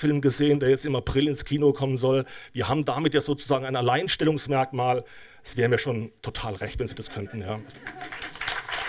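An older man speaks with animation into a microphone in a hall.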